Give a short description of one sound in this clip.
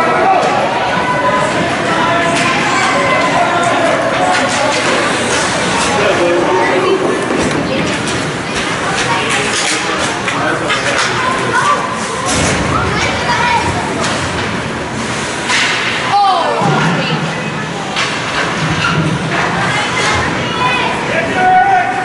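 Hockey sticks clack on the ice and puck.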